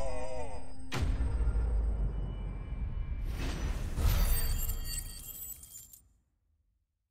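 A magical blast booms and rumbles.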